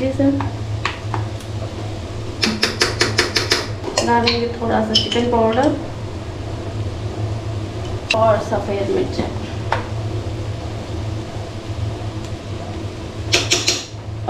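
Vegetables sizzle softly in a hot pan.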